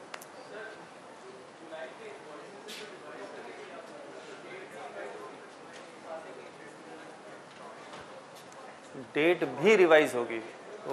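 A man speaks calmly in a room with a slight echo.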